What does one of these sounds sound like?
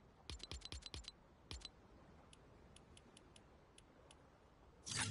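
Short electronic clicks tick quickly, one after another.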